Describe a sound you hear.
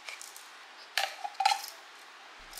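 A plastic lid clicks off a small vacuum cleaner.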